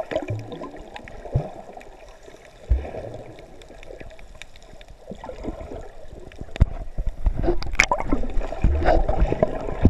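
Water churns and crackles underwater as swimmers kick.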